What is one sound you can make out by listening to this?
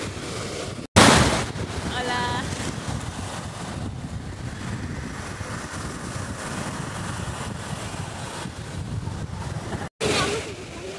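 A young woman speaks cheerfully close to the microphone.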